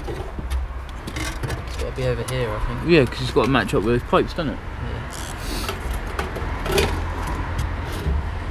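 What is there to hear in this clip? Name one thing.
Metal parts clink and rattle close by.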